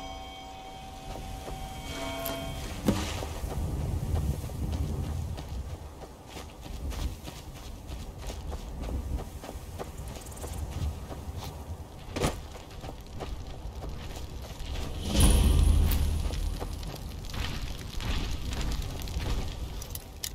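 Footsteps crunch over grass and dry ground.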